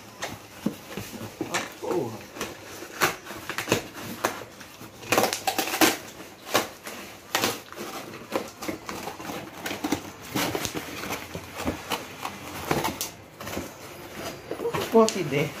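Cardboard rustles and scrapes as hands rummage inside a box.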